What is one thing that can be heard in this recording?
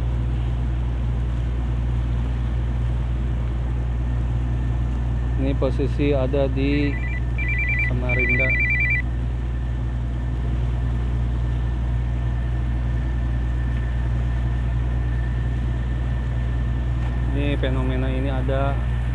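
Choppy waves wash and splash against a moving ship.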